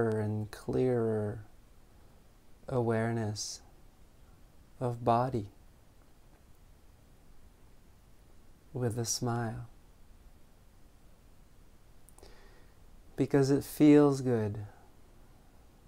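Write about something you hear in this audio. A man speaks slowly and calmly close to a microphone, in short phrases with long pauses.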